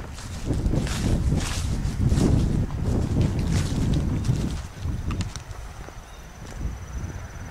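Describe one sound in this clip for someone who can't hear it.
Wind gusts and buffets loudly outdoors.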